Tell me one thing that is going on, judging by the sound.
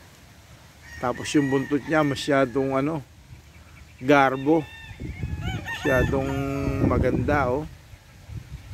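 Roosters crow loudly nearby, one after another.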